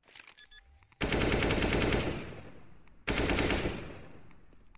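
Rapid rifle fire rings out in two loud bursts.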